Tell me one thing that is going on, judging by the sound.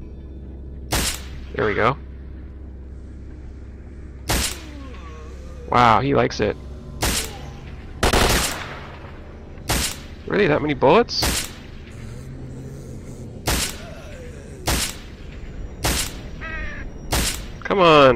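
A rifle fires sharp single shots, again and again.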